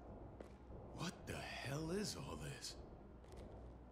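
A young man speaks in a tense, startled voice close by.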